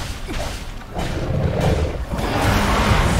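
A heavy blow crashes into water.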